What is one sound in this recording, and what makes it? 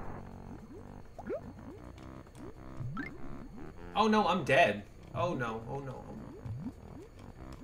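Cartoonish game sound effects chirp and boing.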